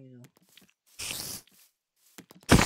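A spider hisses.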